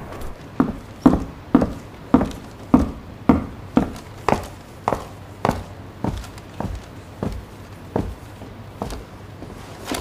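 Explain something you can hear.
Footsteps thud on wooden stairs and a hard floor.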